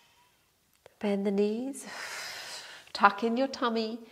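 A young woman speaks calmly and clearly into a close microphone.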